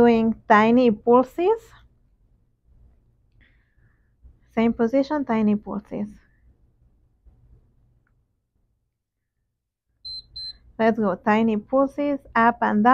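A young woman speaks calmly and clearly, as if giving instructions.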